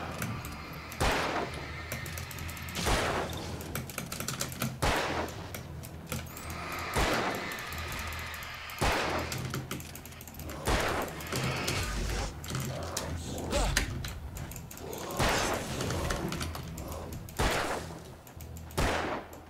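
Gunshots ring out every two seconds or so, each with a short echo.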